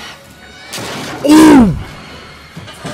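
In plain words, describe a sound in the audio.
A young man shouts loudly in fright.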